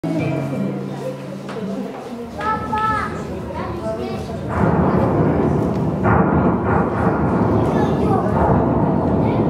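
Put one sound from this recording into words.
A film soundtrack plays loudly over loudspeakers in a large hall.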